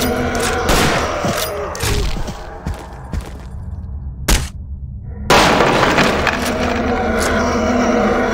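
A rifle fires loud single shots that echo.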